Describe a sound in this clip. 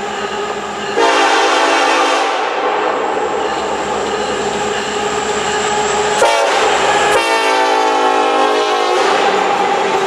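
A train horn blows loud, long blasts.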